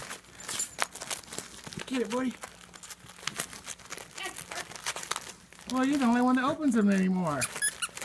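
Wrapping paper rustles and tears as a dog digs through it.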